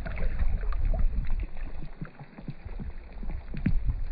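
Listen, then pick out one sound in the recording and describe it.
A fish splashes in the water.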